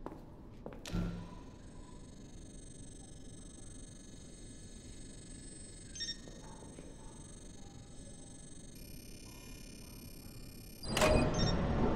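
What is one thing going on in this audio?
An electronic gadget hums and warbles steadily.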